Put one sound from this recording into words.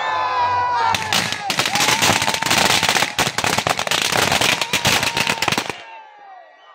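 Fireworks crackle and pop rapidly overhead.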